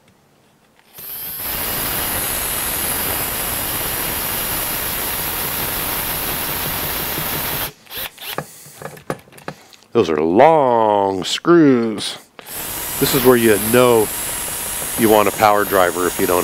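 A cordless power drill whirs steadily as it drives in screws.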